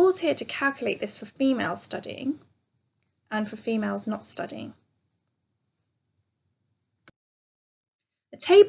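A woman speaks calmly through a microphone, explaining in pauses.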